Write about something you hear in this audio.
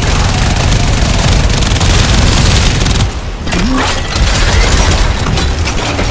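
Rapid gunfire rattles and blasts.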